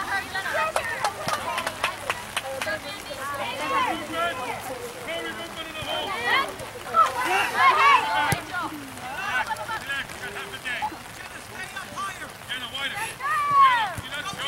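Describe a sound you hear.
Women and men close by shout and cheer with excitement.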